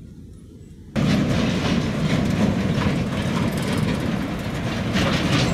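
A truck engine rumbles as a truck drives slowly over a dirt road.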